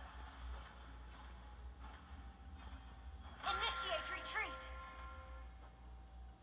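Electronic game sound effects of clashing blows and bright chimes ring out.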